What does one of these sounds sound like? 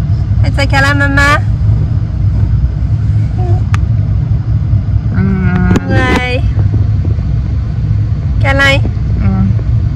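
A teenage girl makes high-pitched vocal sounds close by.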